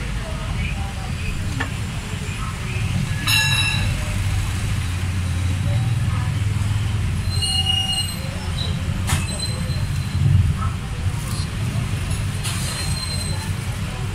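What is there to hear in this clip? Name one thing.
A cloth rustles and rubs against a rubber boot.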